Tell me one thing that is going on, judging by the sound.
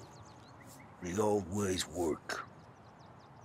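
A second man answers in a calm voice.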